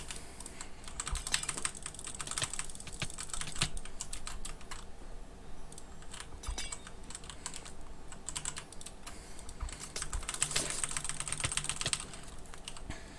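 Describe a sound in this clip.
Game hits and clicks sound in quick bursts during a fight.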